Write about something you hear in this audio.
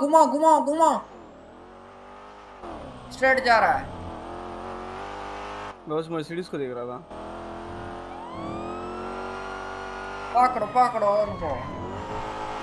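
A car engine hums and revs up.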